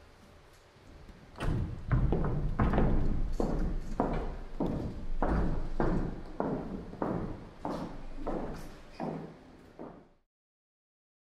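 Footsteps cross a stage.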